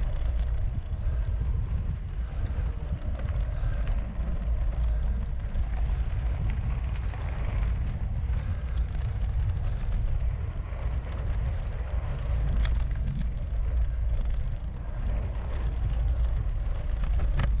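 Bicycle tyres rumble and crunch over a rough dirt track.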